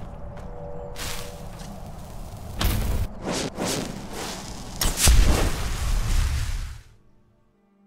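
A magic spell crackles and whooshes with a bright burst.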